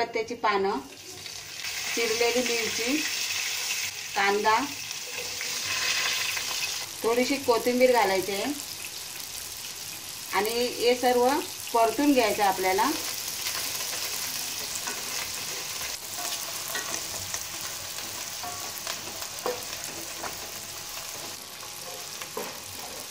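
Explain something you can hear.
Hot oil sizzles and crackles in a pan.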